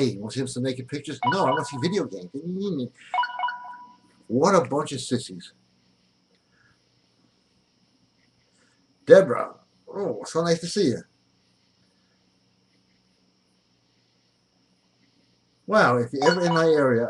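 A middle-aged man talks with animation close to a microphone, with pauses.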